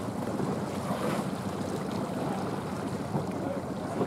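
Dolphins splash briefly at the water's surface.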